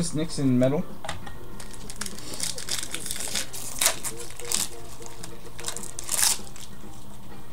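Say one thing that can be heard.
Trading cards rustle and flick in a man's hands.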